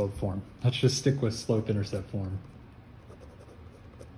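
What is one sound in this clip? A pen scratches on paper as it writes.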